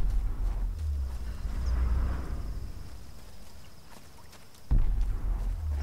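Footsteps crunch on dirt and leaves.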